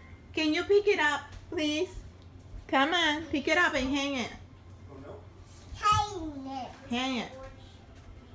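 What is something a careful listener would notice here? A toddler babbles and calls out in a high voice close by.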